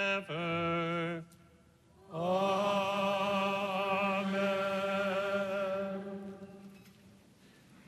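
A man chants a sung prayer through a microphone in a large echoing hall.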